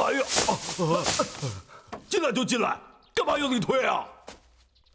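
A man shouts angrily up close.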